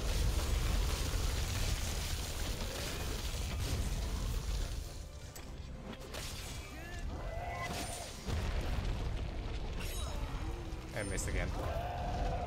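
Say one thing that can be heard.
Blade strikes clash and thud in quick bursts.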